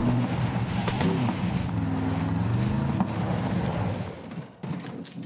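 A vehicle engine hums and revs.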